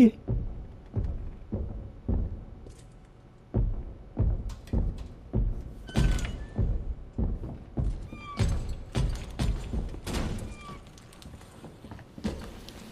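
Heavy footsteps thud slowly on a hard floor.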